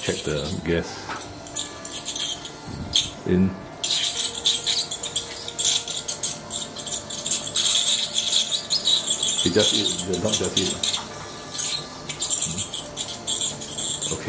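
A dental scaler whines and hisses with spraying water.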